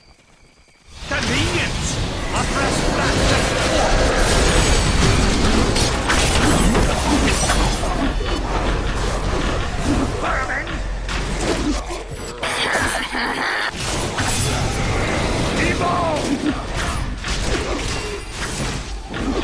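Magic blasts and explosions crash and boom in a fast, busy fight.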